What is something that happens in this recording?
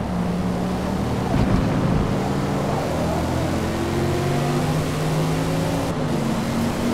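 A car engine revs high and climbs through the gears.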